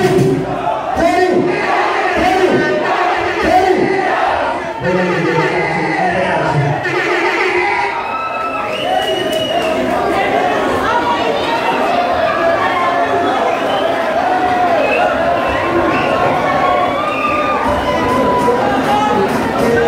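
A crowd of young people chatters and cheers loudly.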